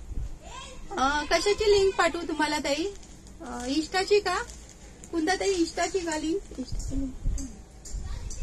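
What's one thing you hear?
A middle-aged woman speaks close by with animation.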